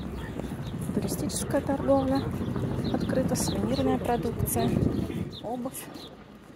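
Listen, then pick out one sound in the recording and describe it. A man and a woman talk casually nearby.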